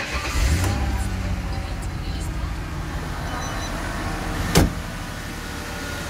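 A car engine idles with a steady rumble.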